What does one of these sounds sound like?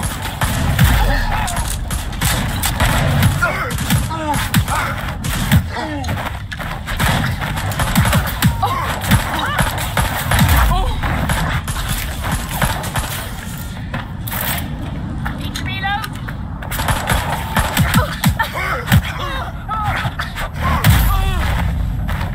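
Punches land with heavy thuds in a brawl.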